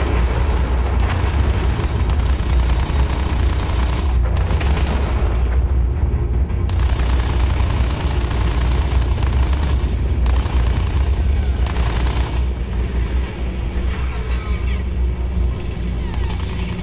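A propeller plane engine drones steadily.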